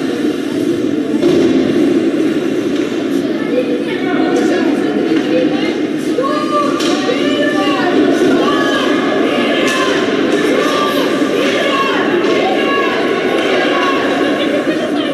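A crowd of spectators chatters and shouts in an echoing arena.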